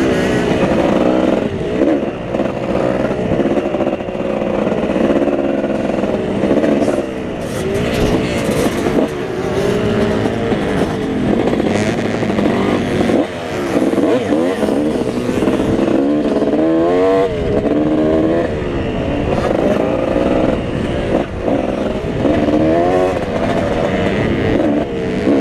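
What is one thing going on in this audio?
A dirt bike engine roars close by, revving up and down throughout.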